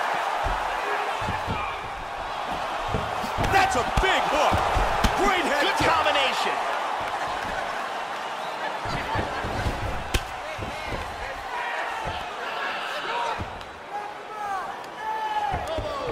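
Punches and kicks land with thuds.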